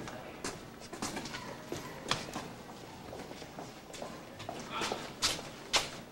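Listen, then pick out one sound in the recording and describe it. Footsteps walk away down a corridor.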